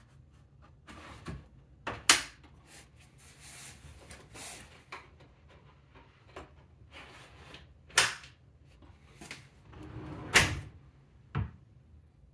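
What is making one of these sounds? A wooden drawer slides on its runners and bumps shut.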